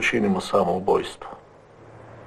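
A middle-aged man speaks calmly nearby.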